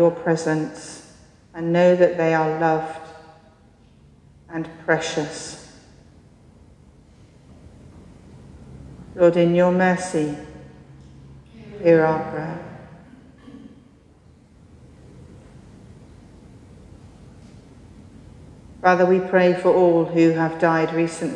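A man speaks calmly in phrases in a large echoing hall, heard through a microphone.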